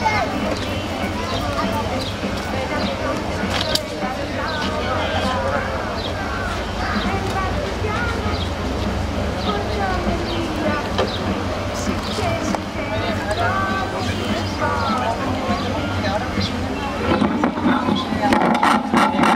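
An elderly man speaks calmly into a microphone over a loudspeaker outdoors.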